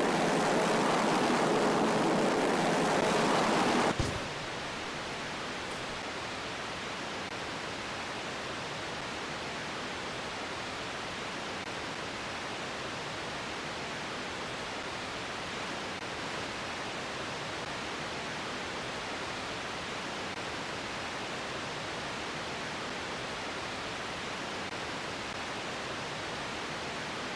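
A rocket engine roars loudly, then drops to a steadier, quieter rush.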